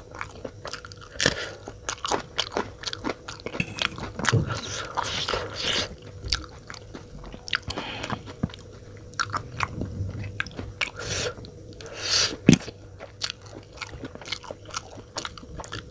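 A man bites into crisp green chillies with a sharp crunch.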